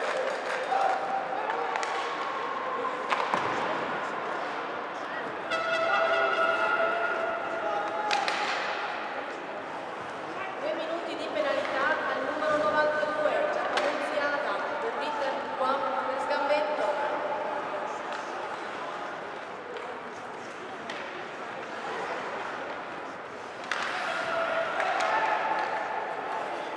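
Ice skates scrape and glide across the ice.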